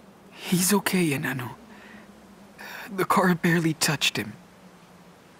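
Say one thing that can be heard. A young man speaks softly and close by.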